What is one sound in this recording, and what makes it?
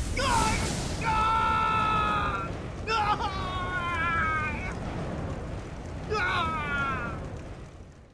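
A man screams in agony.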